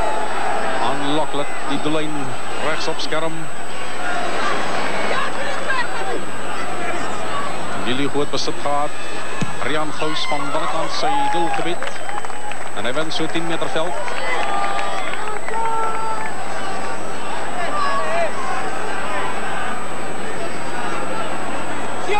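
A large crowd cheers and roars across an open stadium.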